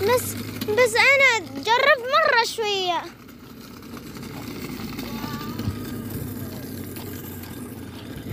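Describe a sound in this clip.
Small hard wheels rumble over rough asphalt.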